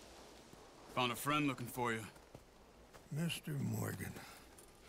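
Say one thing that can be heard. A man speaks in a friendly voice.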